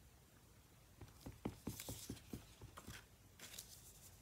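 A stamp taps lightly on an ink pad.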